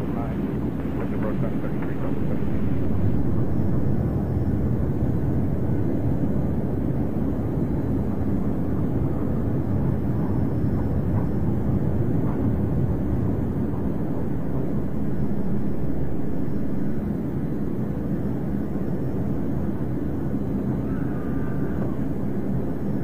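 A jet engine roars steadily inside a cockpit.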